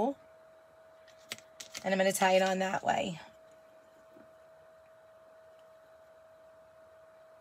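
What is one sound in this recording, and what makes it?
A fabric ribbon rustles softly as hands tie it.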